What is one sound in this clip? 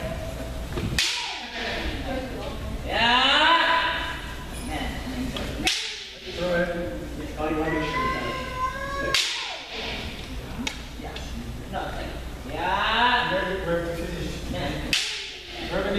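Bamboo swords strike with sharp cracks in a large echoing hall.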